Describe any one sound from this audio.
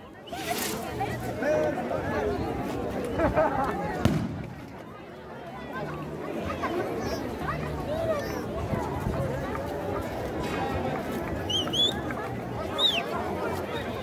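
A large outdoor crowd chatters loudly all around.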